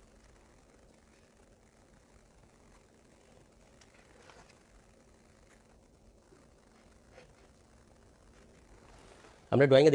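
A marker scratches faintly on a whiteboard.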